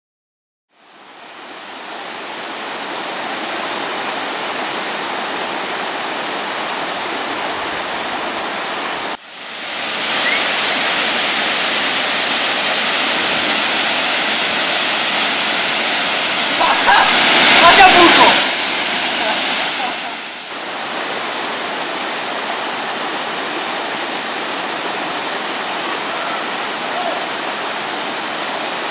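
A waterfall roars as it pours onto rocks.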